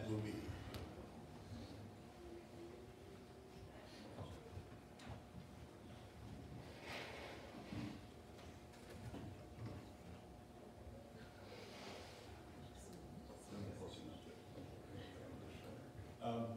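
A man speaks calmly at a distance in a large room.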